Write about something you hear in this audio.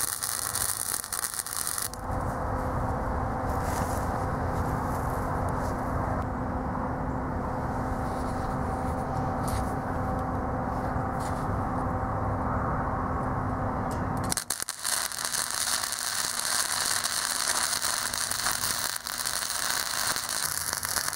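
A welding torch crackles and sizzles loudly.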